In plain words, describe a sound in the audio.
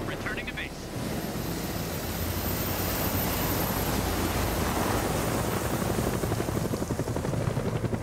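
A helicopter's rotor thumps and roars close by, growing louder.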